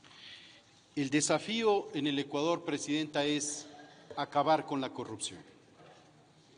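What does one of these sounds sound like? A man speaks steadily and formally into a microphone.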